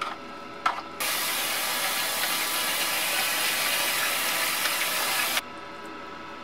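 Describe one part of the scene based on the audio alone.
Tap water runs and splashes into a bowl.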